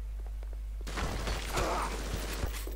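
A shotgun fires with a loud, sharp blast.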